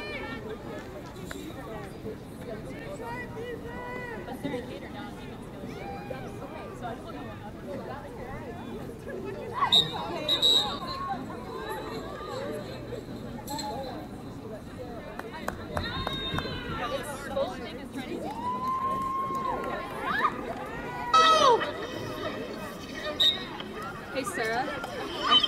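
Young women call out and shout across an open field.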